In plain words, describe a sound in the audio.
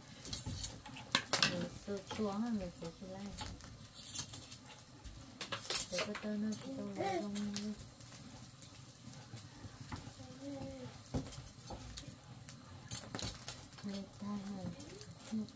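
A wood fire crackles softly.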